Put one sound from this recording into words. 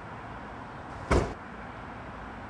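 A car boot lid slams shut.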